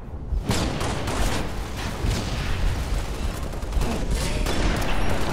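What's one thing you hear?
Video game gunfire and blasts boom repeatedly.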